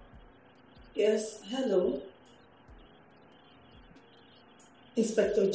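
A woman speaks into a phone nearby, with animation.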